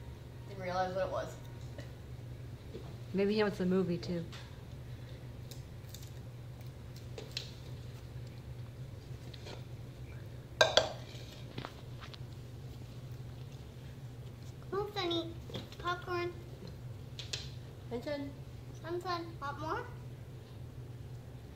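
A cat chews food close by.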